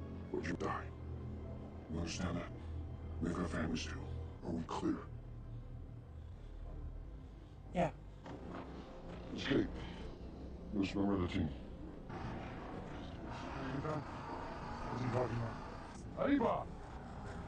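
A man speaks in a low, gruff voice close by.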